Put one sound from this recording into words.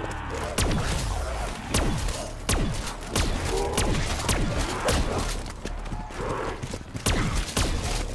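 A gun fires heavy single shots with a booming echo.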